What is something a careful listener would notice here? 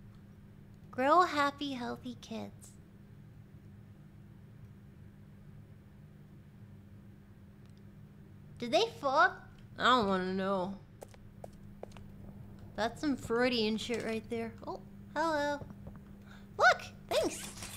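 A young woman talks animatedly into a microphone, in short bursts.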